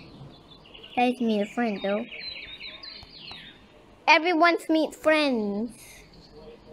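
A young child talks with animation close to a microphone.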